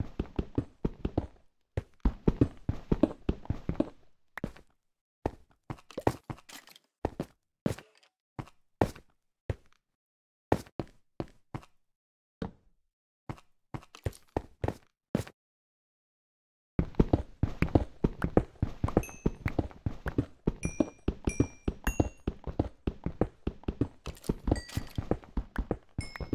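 Stone blocks crack and crumble under quick, repeated pickaxe blows.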